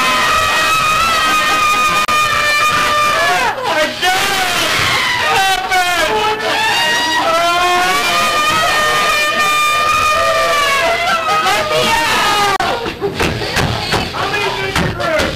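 A woman shrieks and laughs close by.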